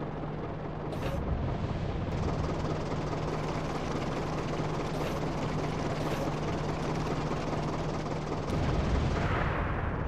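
A tank cannon fires with a deep boom.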